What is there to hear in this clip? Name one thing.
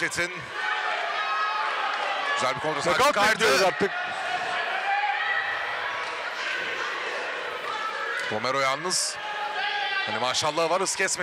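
A crowd cheers and shouts throughout a large hall.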